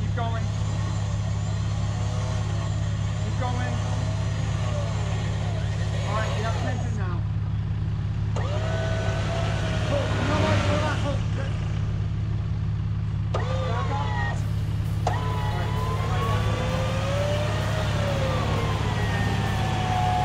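A truck engine idles steadily.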